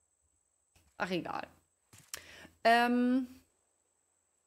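A young woman speaks briefly and with animation into a close microphone.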